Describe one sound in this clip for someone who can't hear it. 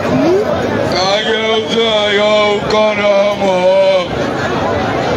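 A man sings loudly through a loudspeaker outdoors.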